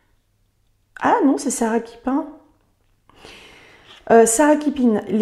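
A young woman speaks close to a microphone, reading aloud calmly.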